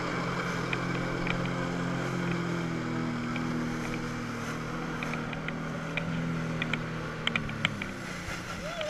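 A jet ski engine drones steadily nearby, then cuts out.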